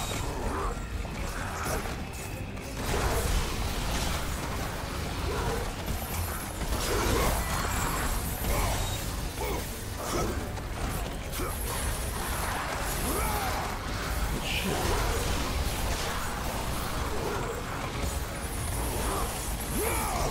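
Blades slash and strike enemies again and again with sharp impacts.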